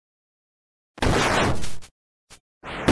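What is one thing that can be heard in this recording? A sword slashes through the air with a sharp swish.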